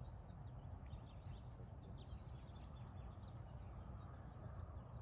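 Wind rumbles steadily across the microphone outdoors.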